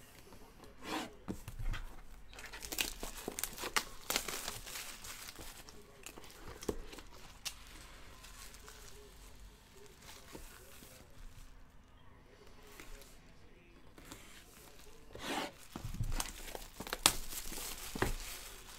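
Plastic wrap crinkles and rustles as it is peeled off.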